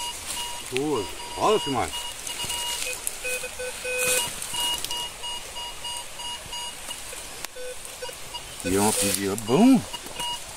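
A metal detector beeps with short steady tones.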